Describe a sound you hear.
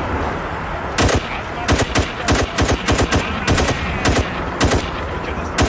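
A rifle fires in quick bursts of loud, sharp shots.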